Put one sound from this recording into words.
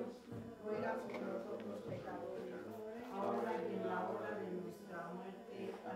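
An elderly man chants in a steady, sung voice close by.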